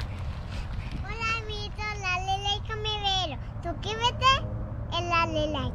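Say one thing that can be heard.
A young girl speaks excitedly close by.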